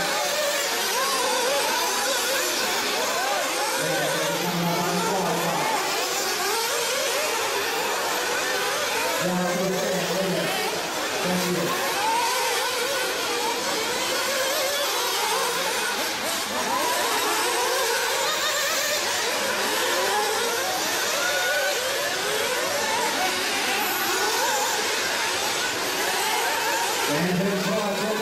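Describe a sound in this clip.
Small electric model racing cars whine as they speed over a dirt track.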